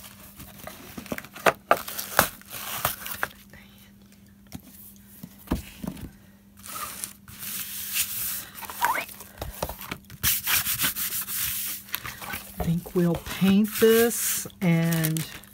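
Stiff paper and card rustle and scrape under hands.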